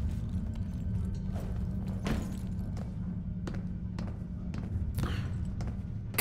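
Footsteps tap lightly on a wooden beam.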